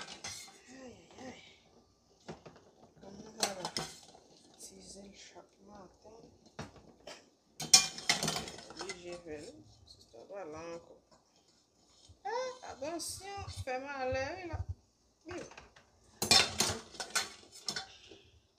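Eggs and a metal utensil clink against a pot and a plastic bowl.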